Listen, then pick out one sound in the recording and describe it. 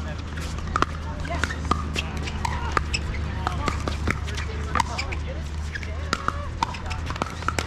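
Paddles pop sharply against a plastic ball, over and over.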